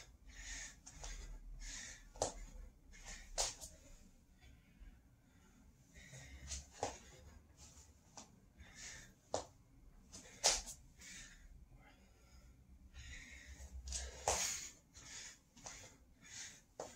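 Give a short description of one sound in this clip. Hands and feet thump on a floor nearby.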